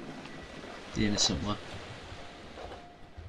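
Glass bottles clink in a crate.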